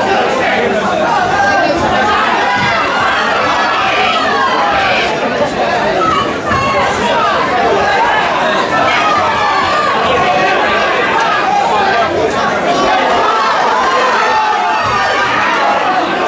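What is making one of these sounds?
A crowd of people talks and cheers loudly all around.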